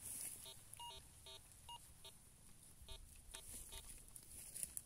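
A metal detector beeps in short repeated tones.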